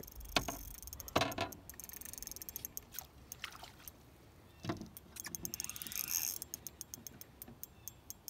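A fishing reel clicks rapidly as its line is wound in.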